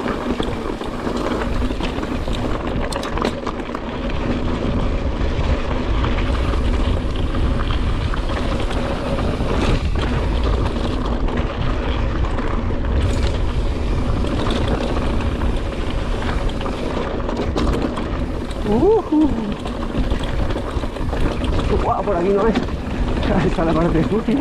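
Bicycle tyres crunch and rattle over a rough gravel track.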